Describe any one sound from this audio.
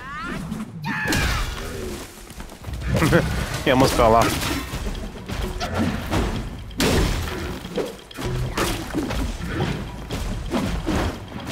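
A giant creature stomps and roars with deep rumbles.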